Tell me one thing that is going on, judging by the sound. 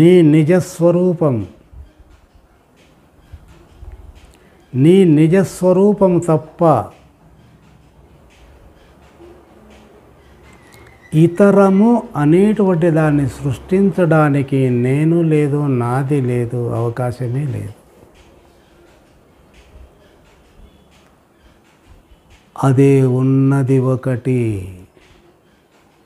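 An elderly man speaks calmly and with emphasis into a close microphone, in bursts with pauses.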